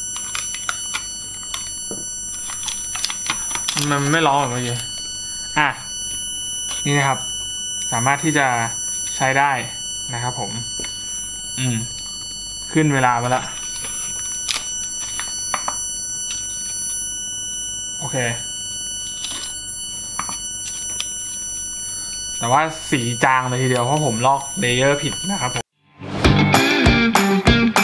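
Plastic and metal parts click and rattle as they are handled.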